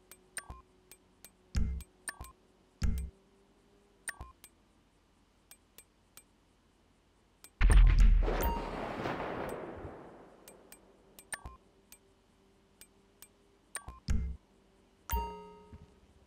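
Short menu clicks tick now and then.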